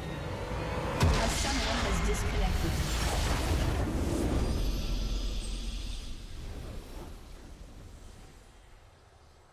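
A loud rumbling explosion booms and slowly fades.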